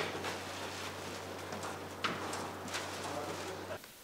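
A heavy door latch clicks and the door swings open.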